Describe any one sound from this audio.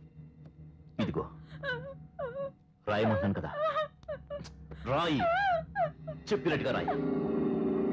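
A man speaks softly and emotionally nearby.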